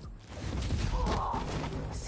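A kick lands with a heavy thud.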